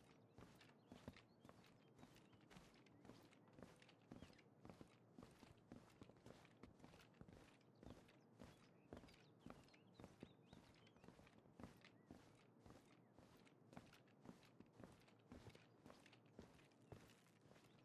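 Soft footsteps tread slowly and steadily on a wooden floor.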